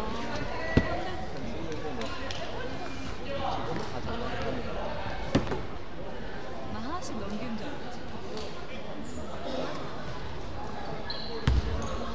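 Young players and spectators chatter and call out, echoing through a large hall.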